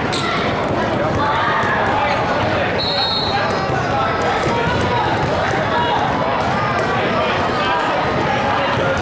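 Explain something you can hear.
Young girls talk and call out in a large echoing gym.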